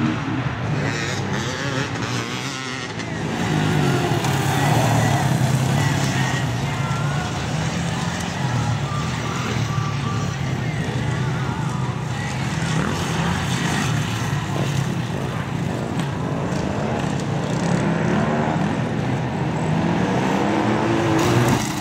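A dirt bike engine roars and revs loudly as it races past.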